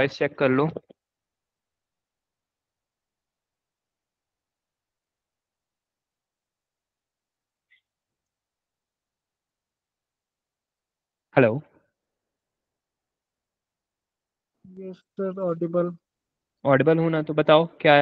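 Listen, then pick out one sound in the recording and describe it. A young man speaks calmly and close to a microphone, in short bursts with long pauses.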